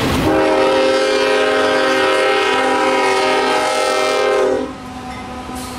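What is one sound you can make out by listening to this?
A locomotive horn blares loudly close by.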